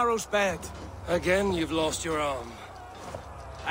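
A second man answers in a calm, deep voice.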